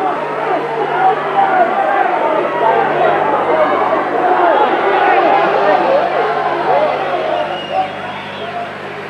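A crowd cheers and shouts loudly in a large hall.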